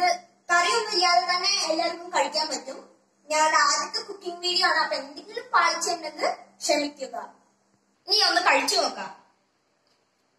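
A boy talks to the listener with enthusiasm, close by.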